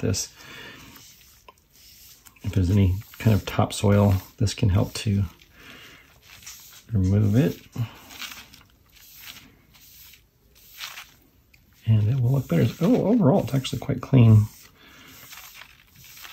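A cloth rubs softly across a sheet of paper.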